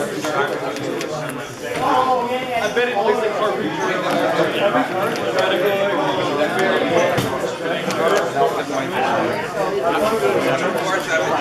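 Playing cards riffle and shuffle in hands.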